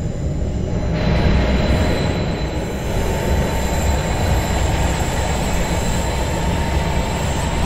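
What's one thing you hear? A train rushes past loudly outdoors.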